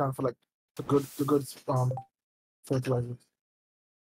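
A menu opens with a soft click.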